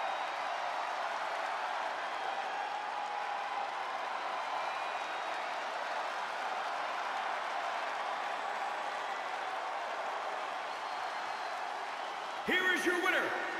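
A large crowd murmurs and cheers in an echoing arena.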